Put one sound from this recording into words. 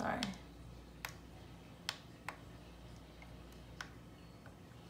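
Small plastic buttons click softly under a thumb.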